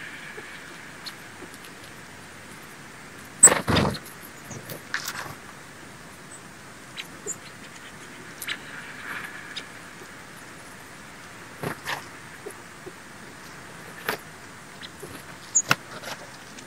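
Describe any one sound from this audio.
Quail peck and scratch at snow on a stump.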